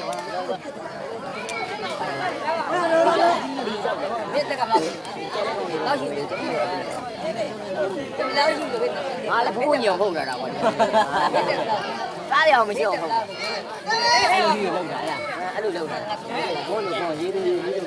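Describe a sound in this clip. A large outdoor crowd chatters and shouts throughout.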